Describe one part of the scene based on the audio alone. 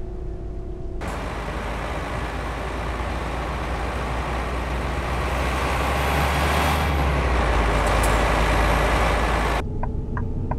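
A bus drives past with a growing, deep engine roar.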